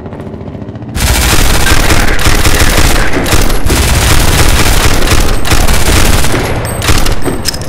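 A machine gun fires rapid bursts of shots in an echoing hall.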